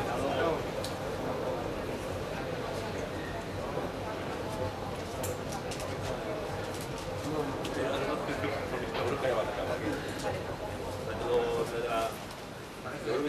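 Several men talk quietly nearby in an echoing space.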